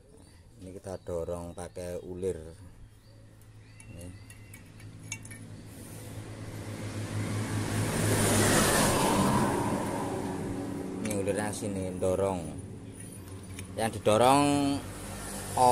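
Metal parts clink and scrape as they are handled.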